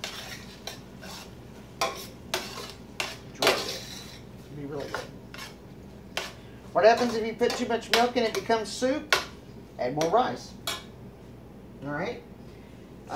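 Utensils click and knock against a metal pan.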